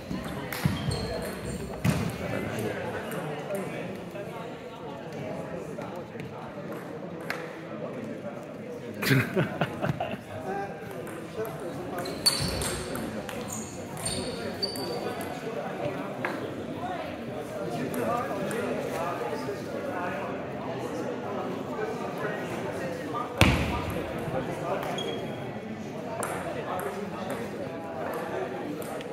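A ping pong ball clicks back and forth on a table and paddles in a large echoing hall.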